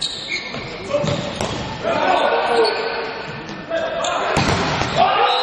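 A volleyball is struck hard with a sharp smack in a large echoing hall.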